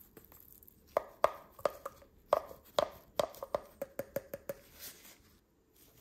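Small grains patter and tap against glass.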